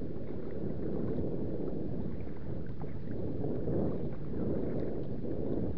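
Water sloshes and splashes close by, heard from low at the surface.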